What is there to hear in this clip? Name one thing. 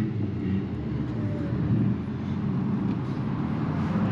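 A car hood creaks open.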